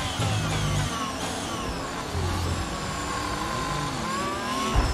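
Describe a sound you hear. Other racing cars roar close by.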